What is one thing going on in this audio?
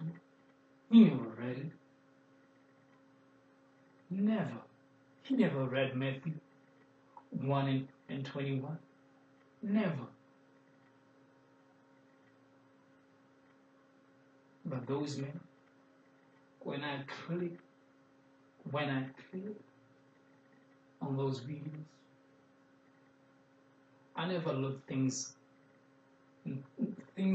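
A young man speaks calmly in short phrases close by, with pauses between them.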